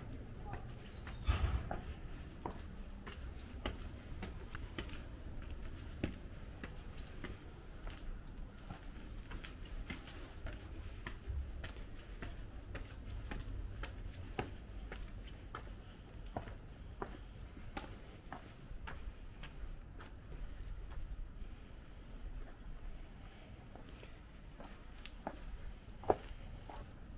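Footsteps climb concrete stairs and walk on pavement at a steady pace.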